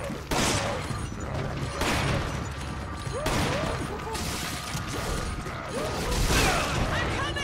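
Heavy blows land with dull thuds.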